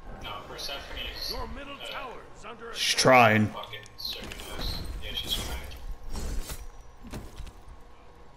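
Game sound effects of magic blasts and hits crackle and boom.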